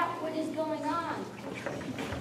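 A man's voice rings out briefly on stage.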